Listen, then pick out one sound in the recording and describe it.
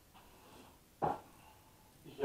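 A stove knob clicks as it is turned.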